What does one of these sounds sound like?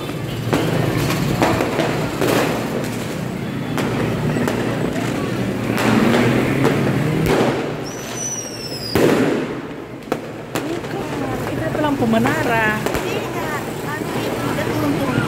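Fireworks bang and crackle repeatedly in the distance.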